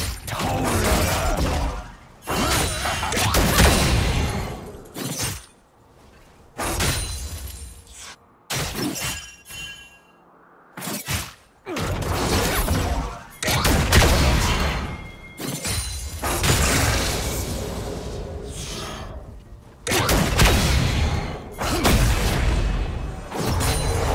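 Magic spell effects whoosh and burst in quick bursts.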